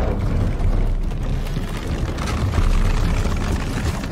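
Wooden planks creak.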